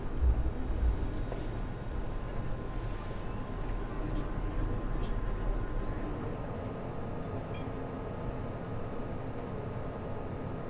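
A large wheel's machinery rumbles low and steadily.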